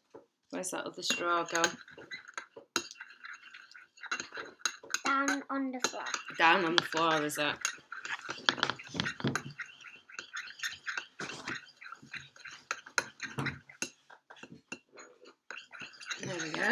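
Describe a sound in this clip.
Chopsticks click against a ceramic bowl.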